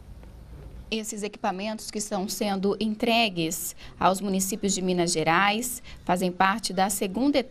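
A woman speaks clearly and steadily, close by.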